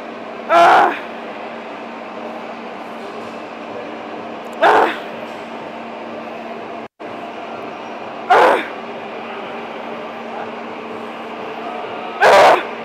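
Barbell plates clank against the floor with each lift.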